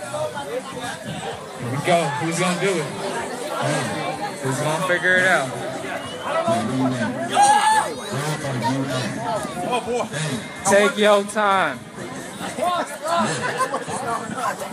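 A crowd of young men shout and cheer excitedly close by.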